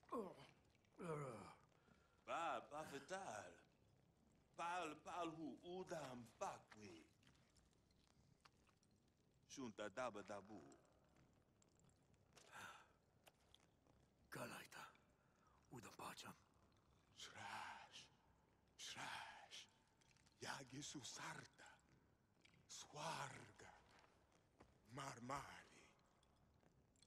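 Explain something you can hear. A man speaks in a rasping, eerie voice, close up, in short bursts.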